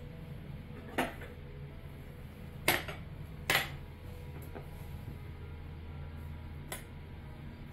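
Metal tongs clink against a ceramic plate.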